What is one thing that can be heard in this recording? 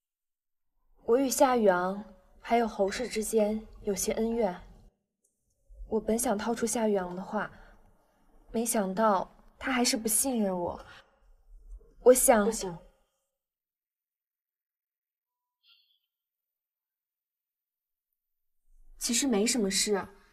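A young woman speaks quietly and tensely, close by.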